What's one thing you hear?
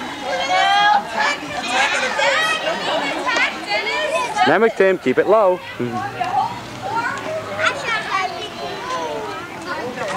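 A crowd of young children and adults chatters and calls out nearby outdoors.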